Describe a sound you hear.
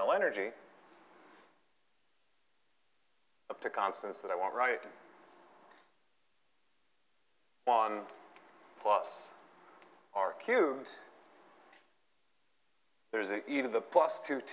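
A man lectures calmly through a microphone, in short bursts with pauses.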